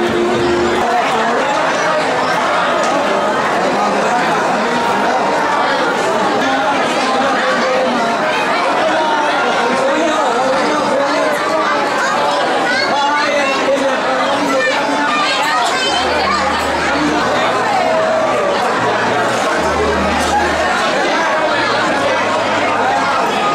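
A crowd of men and women chatters throughout in a large echoing hall.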